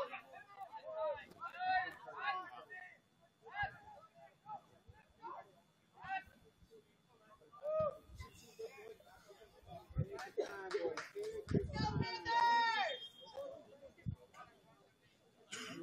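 Young players shout and call to each other from across an open outdoor field.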